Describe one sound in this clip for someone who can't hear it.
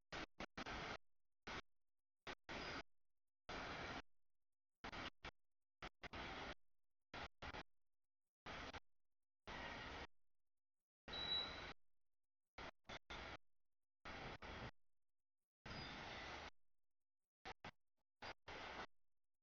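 Train wheels clatter over rail joints in uneven bursts.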